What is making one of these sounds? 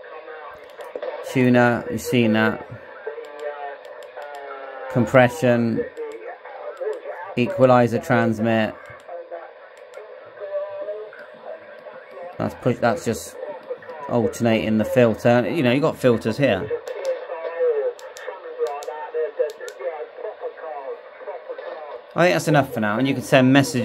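Voices of men crackle from a radio loudspeaker, breaking up through static.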